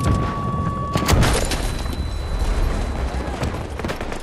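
A loud explosion blasts nearby.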